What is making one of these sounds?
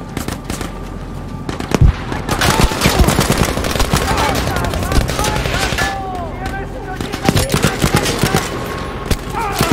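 A submachine gun fires in rapid bursts close by.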